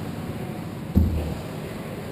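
A hockey net knocks with a dull thump.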